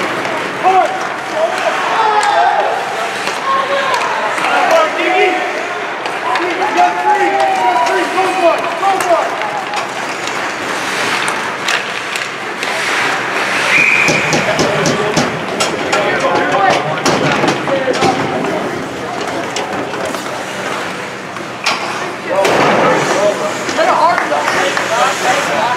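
Sticks clack against a puck and the ice.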